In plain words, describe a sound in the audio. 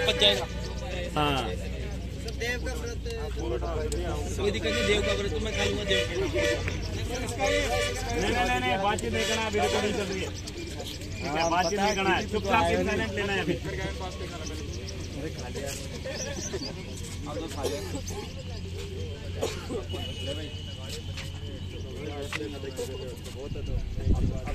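Young men talk and chatter close by outdoors.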